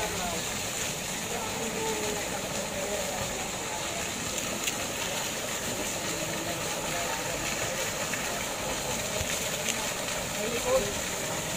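A fountain splashes steadily into a pool.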